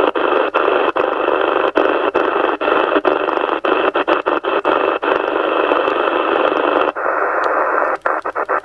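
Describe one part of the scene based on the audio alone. A radio receiver hisses with static that breaks off briefly as it is tuned from channel to channel.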